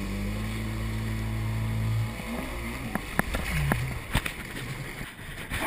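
Water splashes and sprays against a jet ski.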